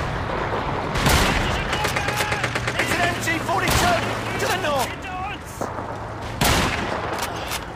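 A rifle fires rapid bursts of loud gunshots.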